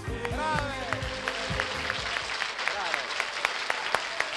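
Several women sing together.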